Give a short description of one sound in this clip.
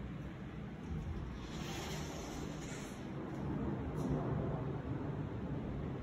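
A sliding closet door rolls open.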